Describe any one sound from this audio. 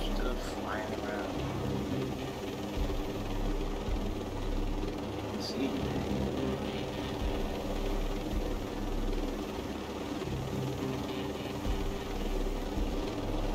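A helicopter's rotor thumps as the helicopter flies.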